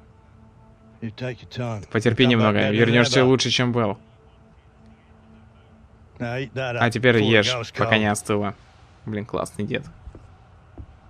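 An elderly man speaks calmly and gently, close by.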